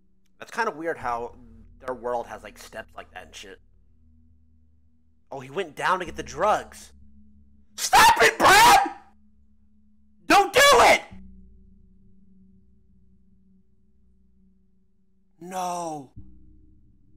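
A young man talks and exclaims loudly into a close microphone.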